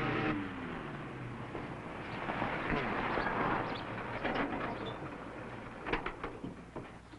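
A pickup truck drives up over dirt and stops.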